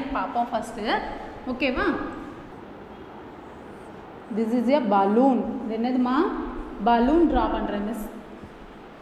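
A woman speaks clearly and calmly, close by, in a slightly echoing room.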